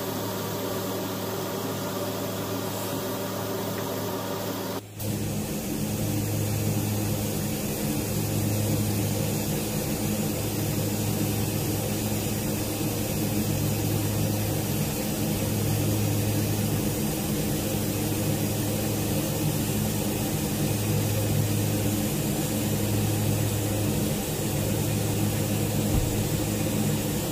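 An electric welding arc buzzes and crackles steadily.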